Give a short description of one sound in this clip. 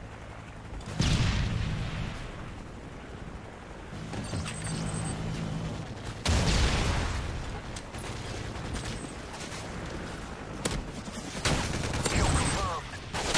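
Loud gunfire and blasts boom in short bursts.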